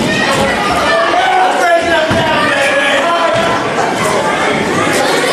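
A crowd of men and women shouts and cheers in an echoing hall.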